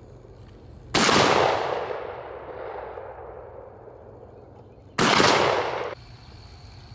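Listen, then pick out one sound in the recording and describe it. A shotgun fires loud blasts that echo away outdoors.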